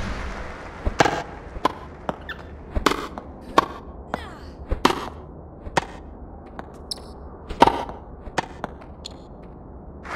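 A tennis racket strikes a ball with sharp pops, back and forth.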